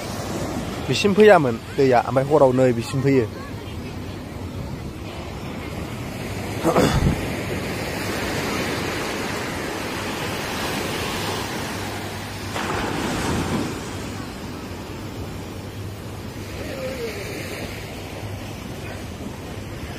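Waves wash up onto a beach and roll back.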